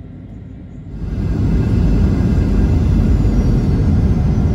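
Wheels rumble loudly on a runway.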